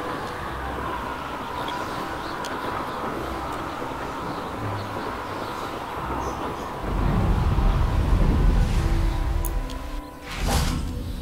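Wind rushes steadily past, growing to a loud roar before dying away.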